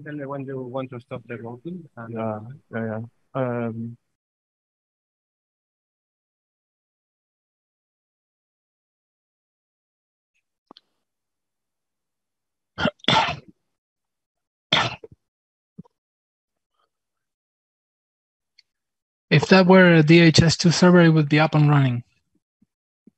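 A man speaks into a microphone, pausing between phrases.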